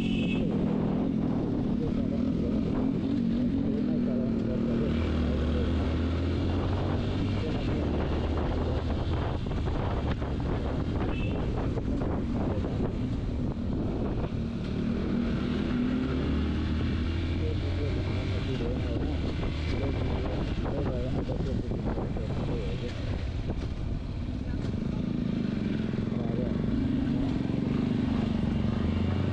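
Wind rushes past close by outdoors.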